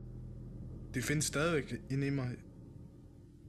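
A young man speaks briefly close by.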